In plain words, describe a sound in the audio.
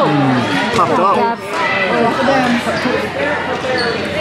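Hockey sticks click against a ball.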